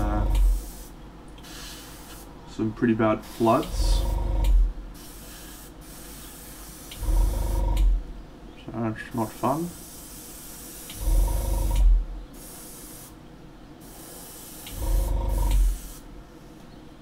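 An airbrush hisses in short bursts of spray.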